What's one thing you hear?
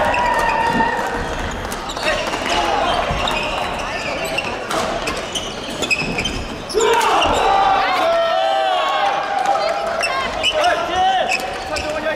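Many people talk at once in the background of a large hall.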